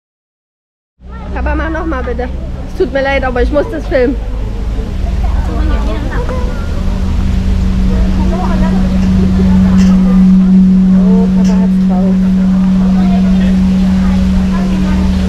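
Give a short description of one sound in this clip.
A large gong hums with a steady, swelling drone as its centre is rubbed.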